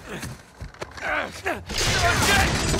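A man cries out in alarm.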